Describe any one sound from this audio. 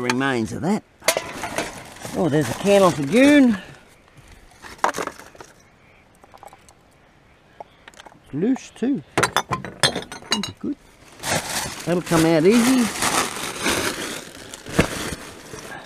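Glass bottles and cans clink together.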